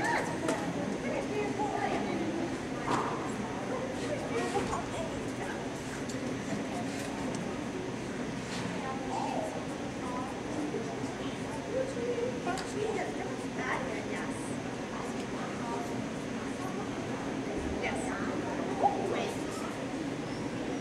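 A man speaks softly to a dog in a large echoing hall.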